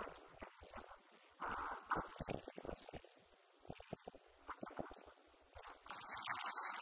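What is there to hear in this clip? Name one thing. An elderly man speaks calmly into a microphone over loudspeakers in an echoing room.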